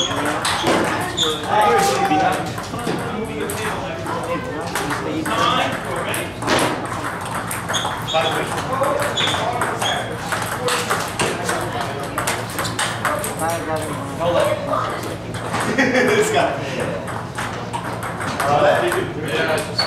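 Men chatter in the background of an echoing room.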